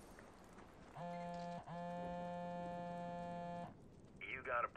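A phone rings with a steady electronic tone.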